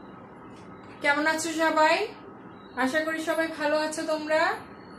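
A woman speaks calmly and clearly, close to a microphone.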